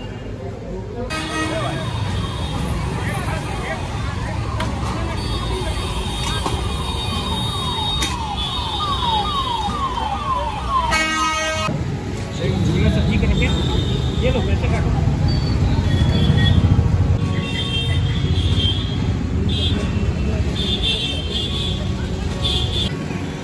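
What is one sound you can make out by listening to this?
A busy outdoor market hums with many people chattering.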